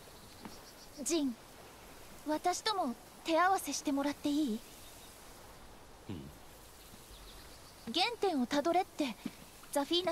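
A young woman speaks calmly and brightly.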